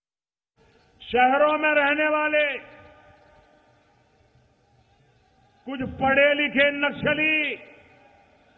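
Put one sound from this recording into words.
A man speaks loudly and forcefully through a loudspeaker.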